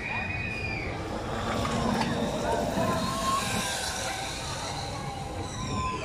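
A roller coaster train rumbles and clatters past on its track.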